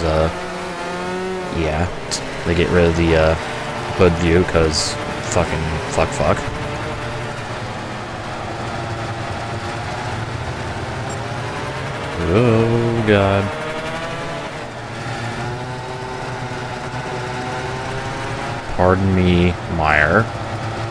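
Kart engines whine and buzz steadily.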